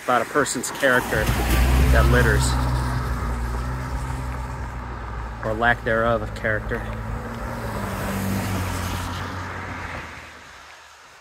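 A car drives past close by, its tyres hissing on a damp road.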